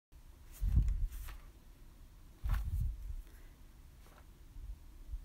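A hand presses and rubs against a sheet of paper with soft thuds and rustles.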